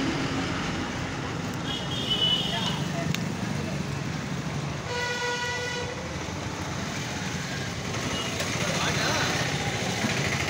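A knife scrapes and cuts through skin and flesh.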